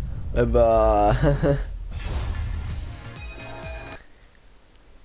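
A bright shimmering chime swells and bursts.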